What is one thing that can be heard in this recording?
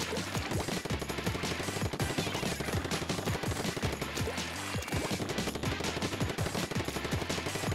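Ink guns fire rapidly with wet splattering.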